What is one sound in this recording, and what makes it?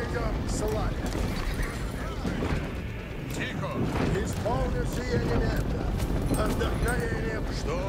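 A large troop of soldiers marches with a dull rumble of many footsteps.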